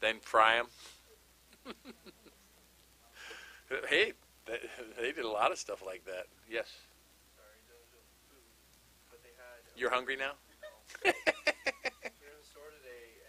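A middle-aged man laughs heartily into a microphone.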